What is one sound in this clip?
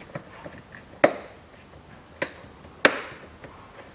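Sharp plastic snaps ring out a few times.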